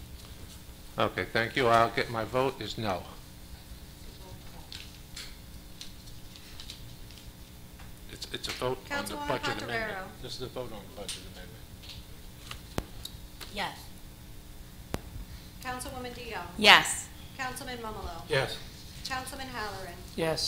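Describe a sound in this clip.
Adults speak calmly in turns through microphones in a large room.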